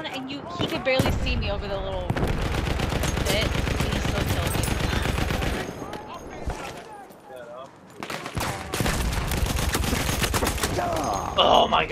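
A machine gun fires in long rapid bursts.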